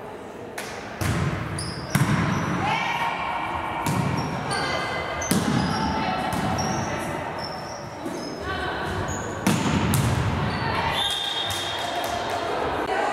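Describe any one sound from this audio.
A volleyball is struck and thuds repeatedly in a large echoing hall.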